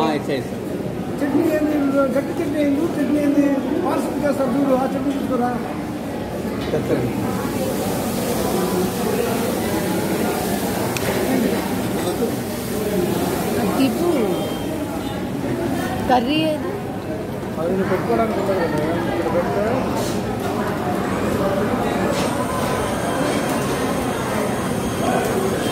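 Many people chatter in a busy, echoing room.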